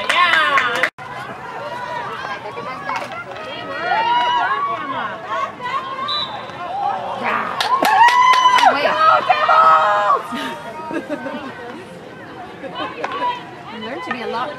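Young women shout and call to each other across an outdoor field.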